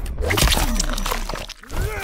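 A man screams in pain.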